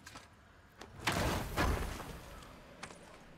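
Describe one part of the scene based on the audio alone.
A bright magical whoosh rises.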